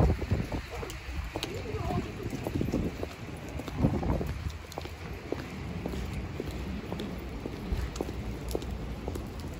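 Footsteps tap on wet pavement close by.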